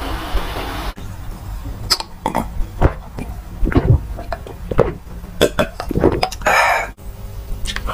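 A young man gulps a drink loudly.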